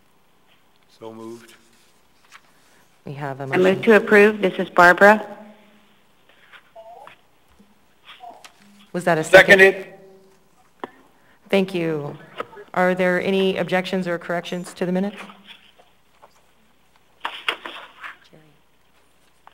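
A woman speaks calmly into a microphone, with a slight echo.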